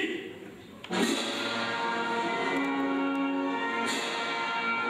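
A man plays a flute in lively bursts.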